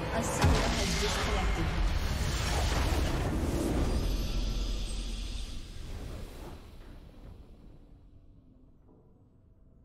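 A triumphant game fanfare swells, then slowly fades away.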